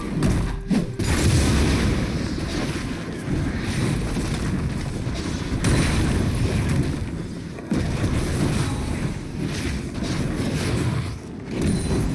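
Magical combat effects whoosh and thud repeatedly.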